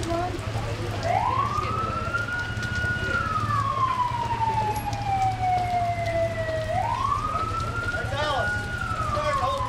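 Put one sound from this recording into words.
A siren wails, rising and falling.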